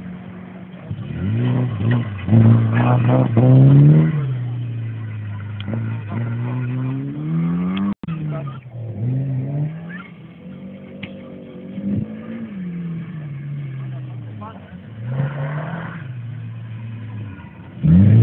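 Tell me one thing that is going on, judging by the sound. A rally car engine revs hard and roars, rising and falling in pitch.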